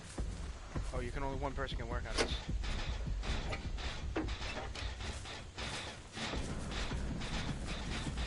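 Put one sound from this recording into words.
A machine rattles and clanks as it is being repaired.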